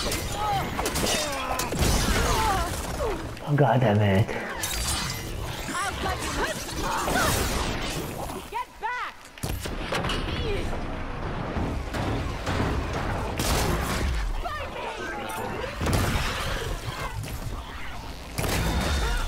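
A mechanical beast growls and screeches.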